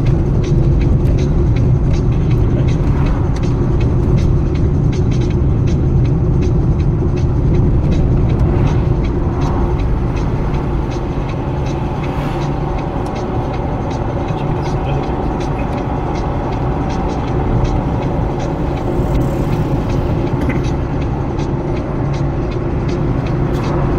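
A car drives along a road, heard from inside.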